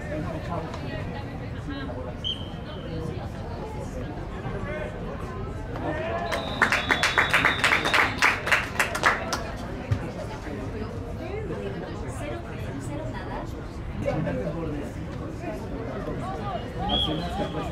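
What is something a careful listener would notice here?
A crowd of players and spectators chatters and calls out outdoors.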